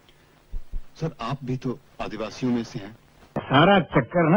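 A man speaks calmly and earnestly, close by.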